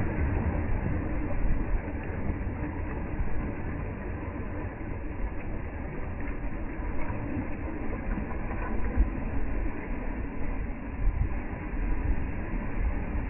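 Small waves wash up onto a sandy shore and fizz as they draw back.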